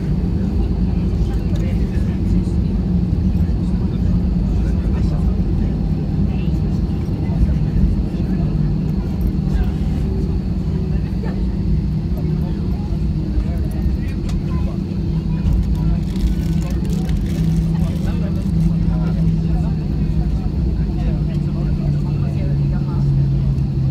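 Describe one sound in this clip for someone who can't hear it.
A jet engine roars steadily from close by.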